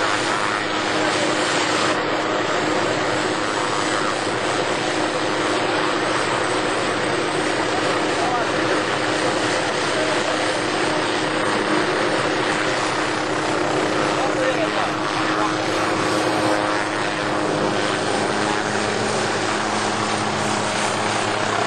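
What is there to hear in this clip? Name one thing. A helicopter engine roars and its rotor thuds steadily nearby.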